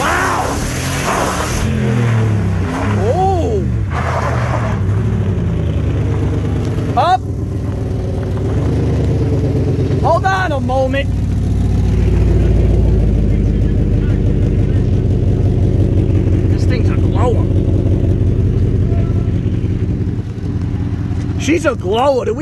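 Tires spin and screech on pavement.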